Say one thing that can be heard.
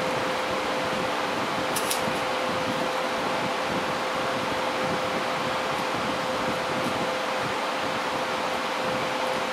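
A welding torch hisses and crackles steadily.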